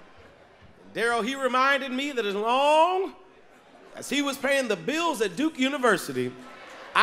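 A man speaks with animation into a microphone, his voice ringing through a large hall.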